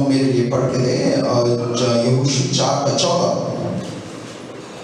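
A man sings loudly into a microphone through loudspeakers in an echoing room.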